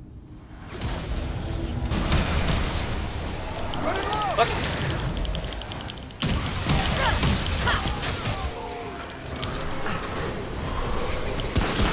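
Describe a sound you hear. A monster growls and shrieks loudly.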